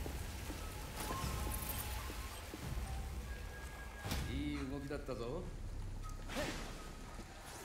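Video game magic blasts whoosh and crackle.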